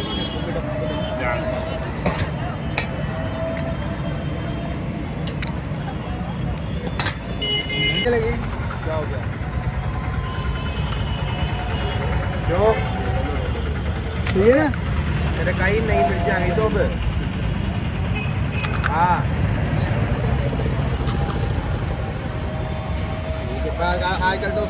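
Metal utensils clink.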